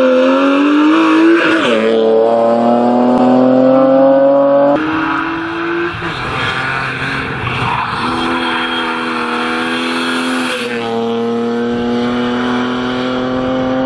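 An inline-six rally car races past at high revs.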